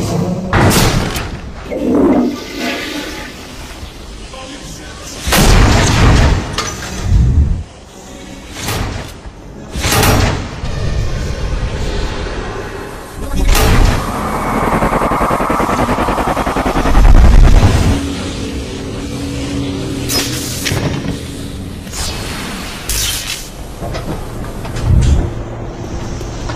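Loud blasts and crashes boom several times.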